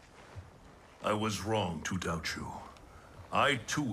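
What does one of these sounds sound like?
An elderly man speaks calmly in a deep voice.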